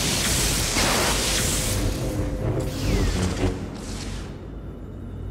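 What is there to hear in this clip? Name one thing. Electricity crackles and sizzles loudly.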